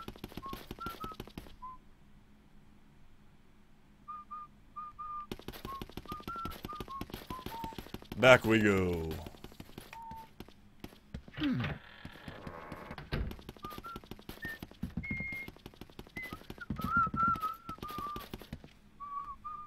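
Quick footsteps tap across a wooden floor.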